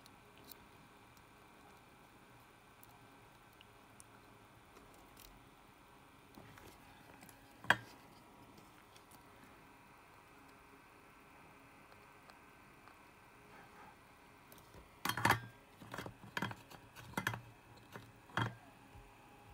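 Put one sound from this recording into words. A circuit board clicks and knocks as hands handle it.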